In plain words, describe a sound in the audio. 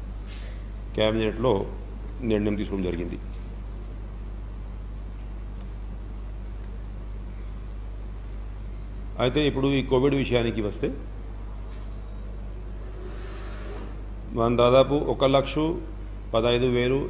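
A man speaks calmly into a microphone close by, in short phrases with pauses.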